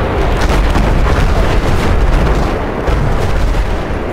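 An explosion roars and rumbles deeply.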